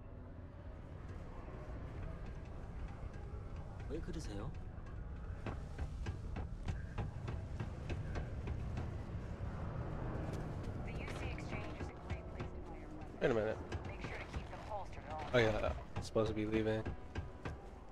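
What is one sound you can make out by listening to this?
Footsteps thud on a hard metal floor.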